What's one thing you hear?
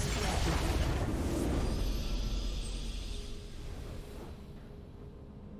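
A triumphant game fanfare blares and fades away.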